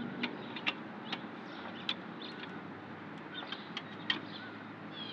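A lug wrench clicks and scrapes against the nuts of a car wheel.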